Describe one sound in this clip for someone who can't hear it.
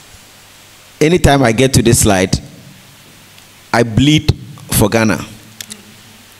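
A man speaks to an audience through a microphone in an echoing hall, with pauses.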